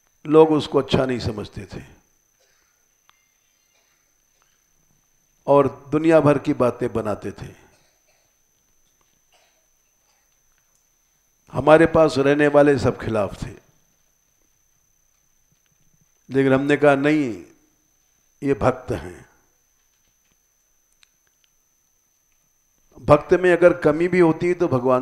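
An elderly man speaks calmly into a close headset microphone, pausing between phrases.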